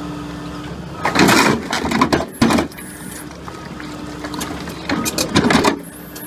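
Concrete blocks crack and crunch as they are crushed.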